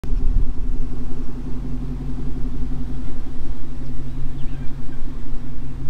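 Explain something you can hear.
A pickup truck engine rumbles as the truck drives slowly past.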